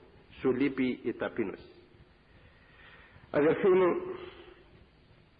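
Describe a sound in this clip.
An elderly man speaks slowly and calmly through a microphone in an echoing hall.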